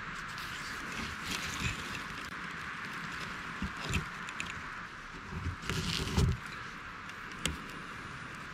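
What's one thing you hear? Fingers scrape and pick at dry, crumbly bark close by.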